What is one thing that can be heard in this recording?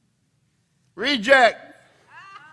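A man cries out loudly.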